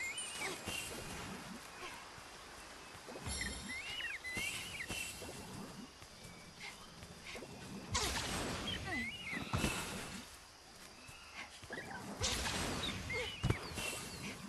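Footsteps rustle quickly through grass.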